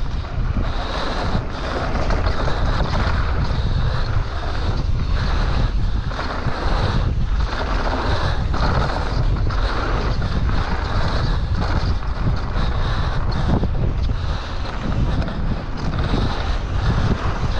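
Bike tyres crunch and rattle over a gravel trail.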